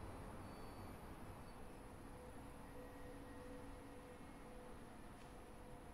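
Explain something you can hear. A young woman speaks softly into a close microphone.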